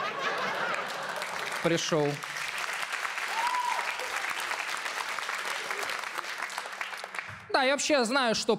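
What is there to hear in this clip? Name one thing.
An audience laughs and applauds loudly in a large hall.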